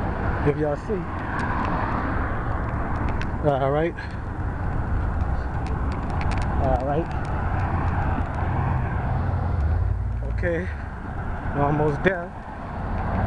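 Cars drive past on a nearby road with a steady rumble.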